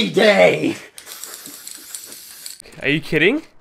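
An aerosol can sprays with a hiss.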